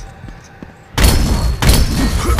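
Heavy blows strike with loud impacts.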